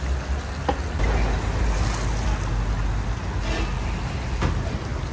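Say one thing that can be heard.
Chickpeas pour and patter into the pot.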